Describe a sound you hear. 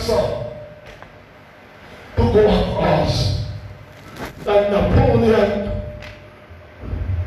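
An elderly man preaches loudly and with passion through a microphone and loudspeakers, in a reverberant hall.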